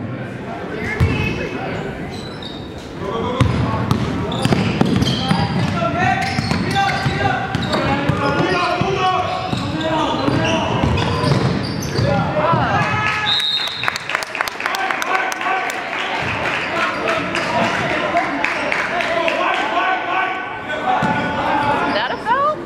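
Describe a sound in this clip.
A basketball bounces on a hard gym floor.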